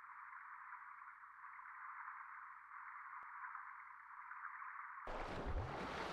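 Muffled water sounds rumble as if heard from underwater.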